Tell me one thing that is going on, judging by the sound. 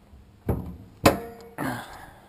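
A car hood pops open with a metal clunk.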